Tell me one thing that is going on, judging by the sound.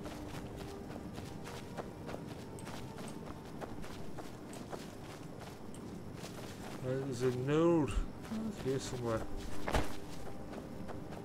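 Footsteps crunch softly through grass and leaves.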